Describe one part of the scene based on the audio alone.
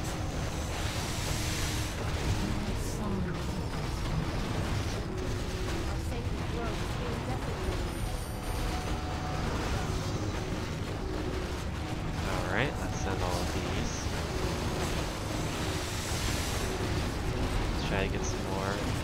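Weapons clash and spells burst in a busy fantasy battle.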